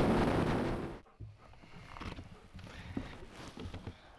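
A camper van door opens with a click.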